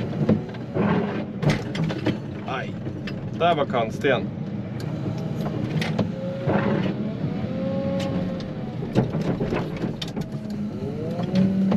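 A heavy machine's diesel engine rumbles steadily.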